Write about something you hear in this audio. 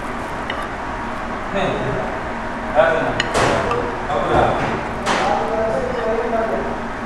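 A metal spoon scrapes and clinks against a plate.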